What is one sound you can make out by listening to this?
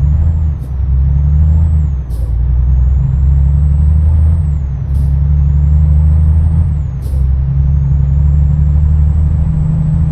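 A truck engine drones steadily, dropping briefly as the gears change.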